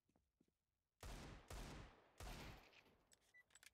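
A pistol fires several loud, echoing shots in quick succession.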